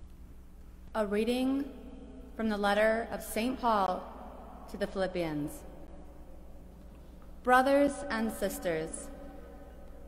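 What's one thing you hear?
A woman reads out calmly into a microphone in a large echoing hall.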